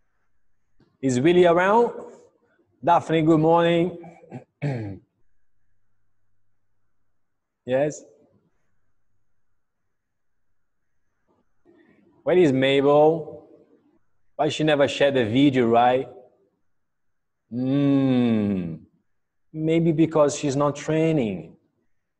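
A man calls out instructions with energy over an online call.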